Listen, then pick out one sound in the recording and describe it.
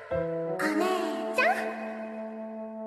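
A young girl calls out cheerfully.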